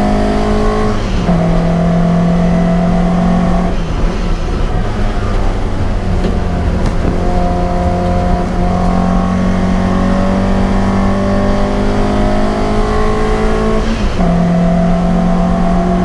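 A race car engine roars loudly from inside the cabin, revving up and down through gear changes.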